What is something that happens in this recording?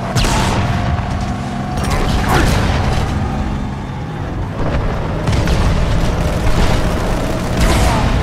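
Energy blasts crackle and burst nearby.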